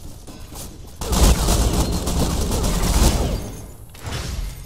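Gunfire rings out in loud bursts.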